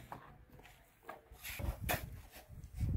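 A shovel scrapes and thuds into sand.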